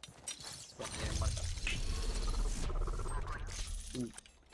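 A magical ability charges with a loud rushing whoosh.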